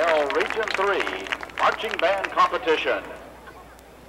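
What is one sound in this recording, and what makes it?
A marching band plays brass chords across an open stadium.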